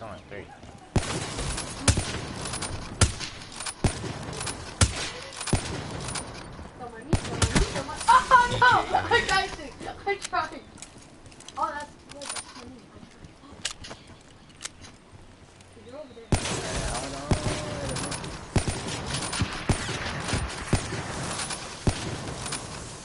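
Guns fire in sharp, rapid bursts.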